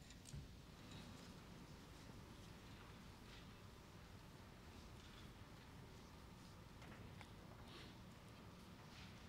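A large seated audience rustles and shifts quietly in a big echoing hall.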